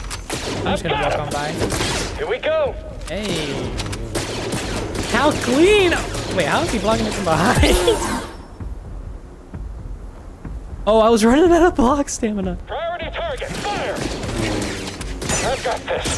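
A lightsaber hums and swooshes.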